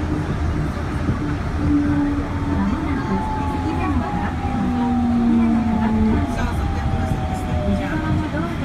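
A train rumbles steadily along its track.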